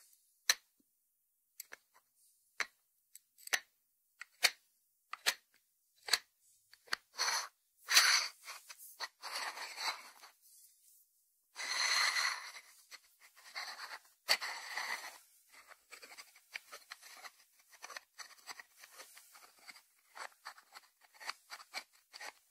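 Fingertips tap on a ceramic dish and its lid.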